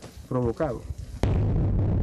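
A man speaks through a face mask outdoors.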